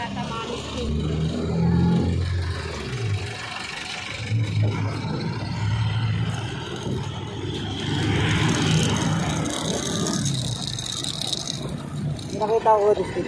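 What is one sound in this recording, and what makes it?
Car and truck engines idle and rumble close by.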